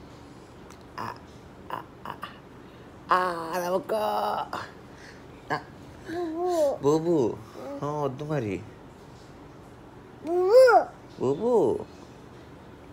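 A young child talks in a high, playful voice close by.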